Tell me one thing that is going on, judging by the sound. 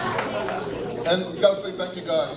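A man speaks loudly through a microphone over loudspeakers.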